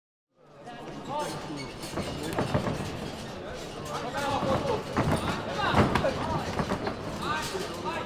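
Kicks and punches thud against gloves and pads.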